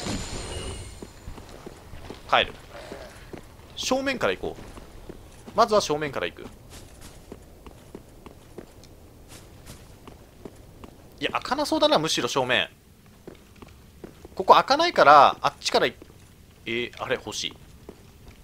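Armoured footsteps clink on stone.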